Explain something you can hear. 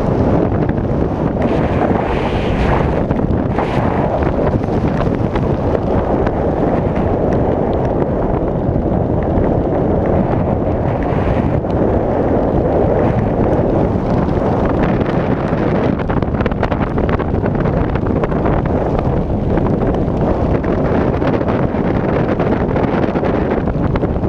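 Wind rushes and buffets the microphone during a descent under a parachute canopy.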